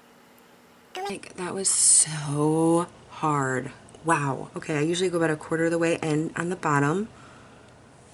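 A woman speaks calmly and close by.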